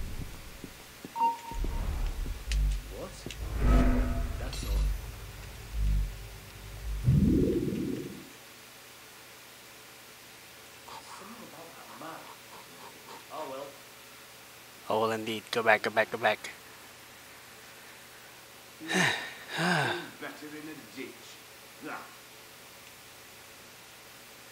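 Soft footsteps creep across a wooden floor.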